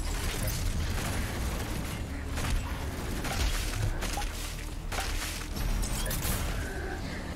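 Guns fire rapidly in a video game.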